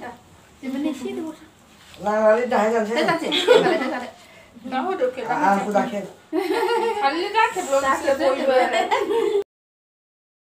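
Young women laugh nearby.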